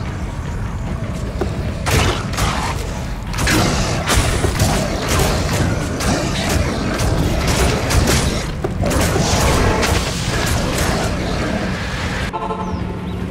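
Lava rumbles and roars steadily.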